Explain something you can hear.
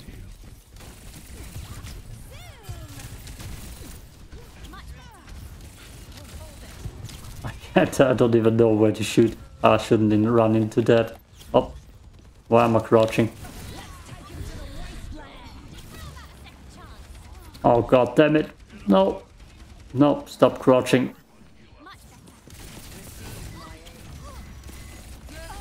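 Rapid laser pistol shots fire in bursts.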